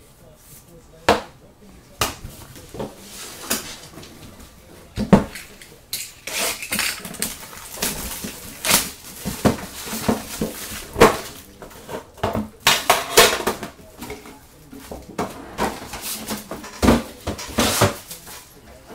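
Cards and boxes knock and tap on a table.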